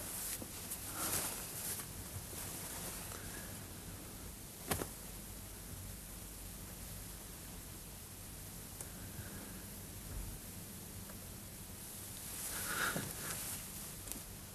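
A man speaks softly nearby.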